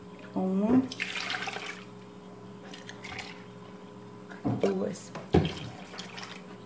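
Milk pours and splashes into a pot of liquid.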